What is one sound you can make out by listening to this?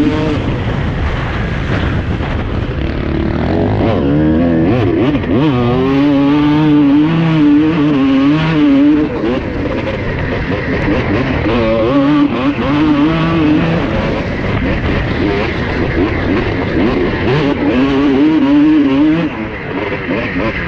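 A dirt bike engine revs loudly up close, rising and falling as it changes gear.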